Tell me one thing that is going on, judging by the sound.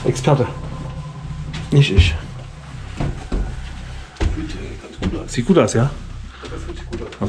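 Footsteps thud on a hard floor and stairs.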